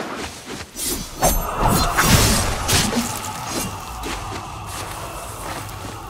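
A blade whooshes through the air in quick slashes.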